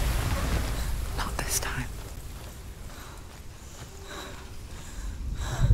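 Footsteps crunch over rough ground.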